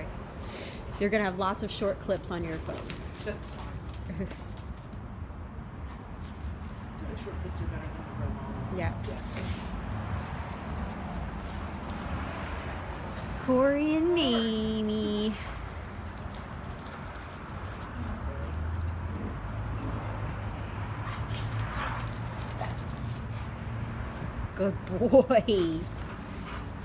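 Two dogs growl and yelp as they wrestle playfully.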